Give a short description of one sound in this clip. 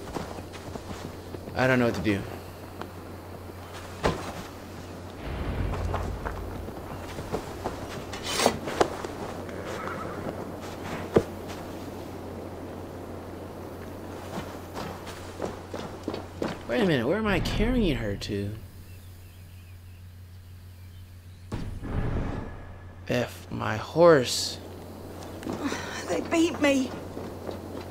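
Footsteps crunch through grass and over a dirt path.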